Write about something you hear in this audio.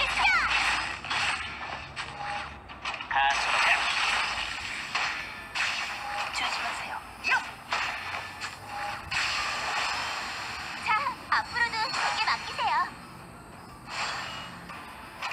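Magic blasts and sword strikes crash and whoosh in quick bursts.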